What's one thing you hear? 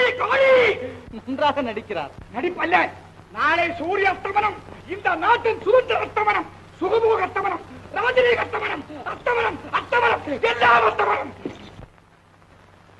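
A man speaks loudly and forcefully, close by.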